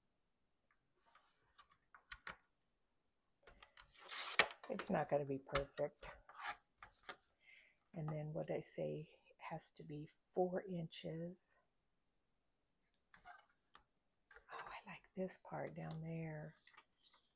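Paper rustles softly as it slides across a board.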